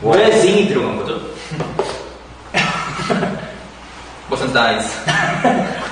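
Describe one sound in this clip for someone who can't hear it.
A young man laughs softly.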